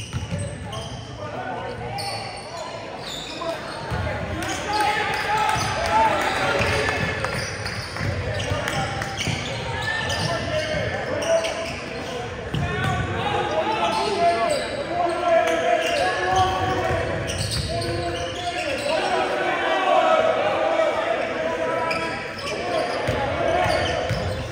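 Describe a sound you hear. Sneakers squeak on a hardwood court, echoing in a large hall.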